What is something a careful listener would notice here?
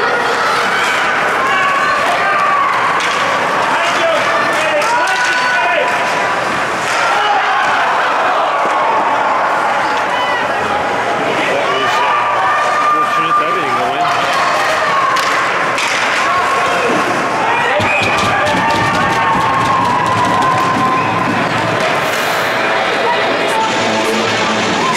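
A crowd of spectators talks and calls out loudly in an echoing rink.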